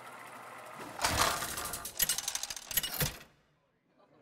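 A metallic clang rings out as the wheel stops.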